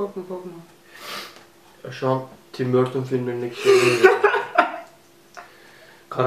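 A young woman laughs up close.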